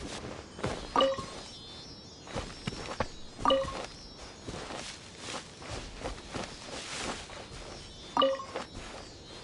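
A short bright chime rings as an item is picked up.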